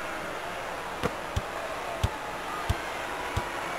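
A basketball bounces on a hardwood floor in a steady rhythm.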